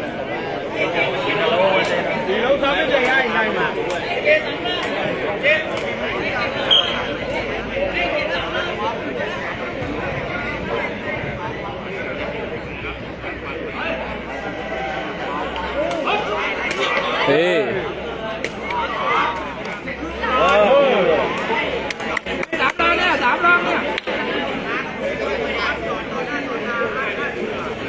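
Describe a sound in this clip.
A crowd of spectators chatters and cheers loudly outdoors.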